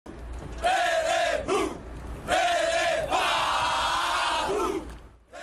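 A large group of men shouts a rhythmic chant in unison outdoors.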